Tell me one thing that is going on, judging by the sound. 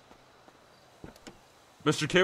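A car door clicks open.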